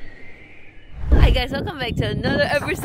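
A young woman speaks excitedly, close by.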